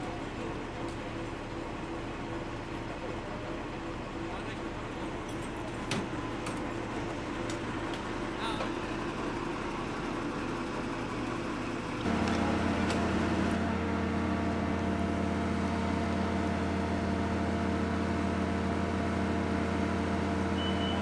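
A fire truck's engine idles with a steady low rumble, growing louder and closer partway through.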